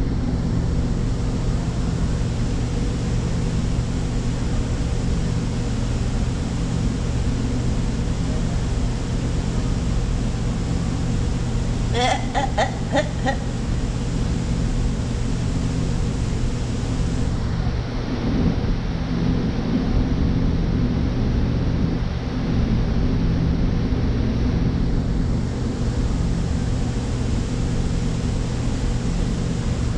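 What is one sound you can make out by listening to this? Leaves rustle faintly as an orangutan handles a leafy branch behind glass.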